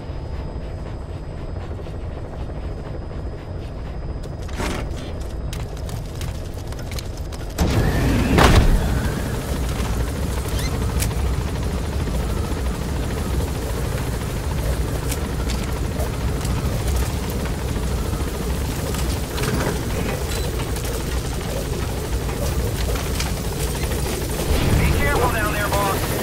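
A helicopter's engine and rotor roar steadily, growing louder partway through.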